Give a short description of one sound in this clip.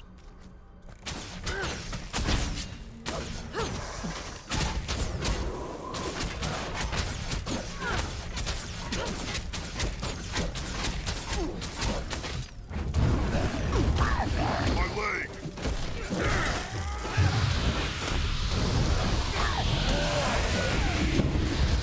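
Video game combat sounds of hits and blows ring out rapidly.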